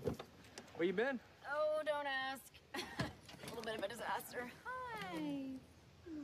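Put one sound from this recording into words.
A young woman calls out excitedly.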